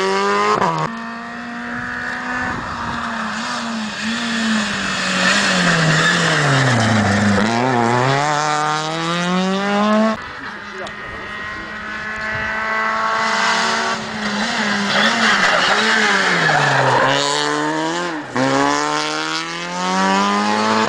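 A rally car engine revs hard as the car approaches and passes close by, then fades into the distance.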